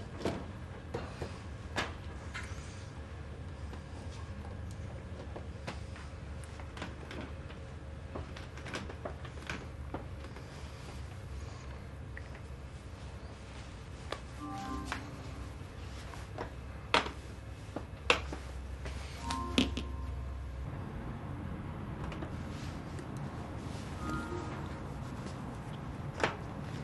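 Glass bottles clink and tap softly against a metal shelf.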